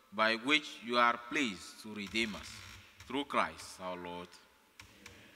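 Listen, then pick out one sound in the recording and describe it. A man chants in a sung voice through a microphone.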